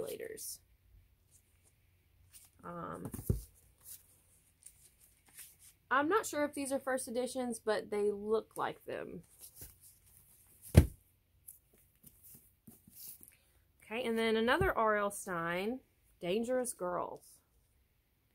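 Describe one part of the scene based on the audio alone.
A young woman talks calmly and with animation close to a microphone.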